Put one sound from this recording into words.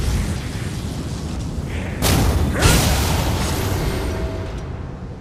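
Magic bursts crackle and whoosh.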